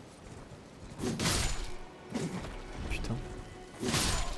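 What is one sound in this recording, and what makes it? A heavy blade whooshes through the air.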